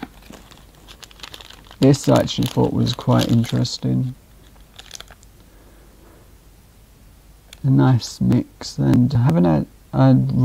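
A plastic wrapper crinkles in a man's hands.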